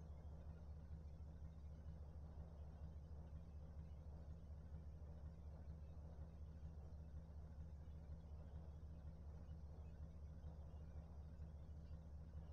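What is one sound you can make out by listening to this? A car engine idles with a steady low rumble.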